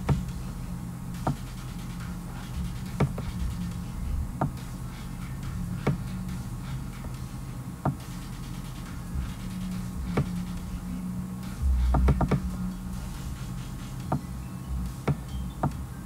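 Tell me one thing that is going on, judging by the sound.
A young man talks quietly, close to a microphone.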